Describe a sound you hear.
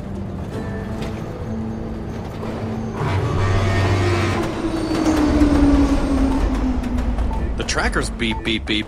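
A car engine hums while driving.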